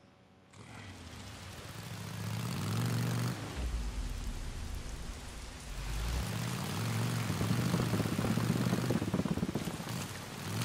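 A motorcycle engine rumbles and revs as the bike rides along.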